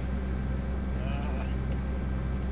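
A young man speaks briefly nearby.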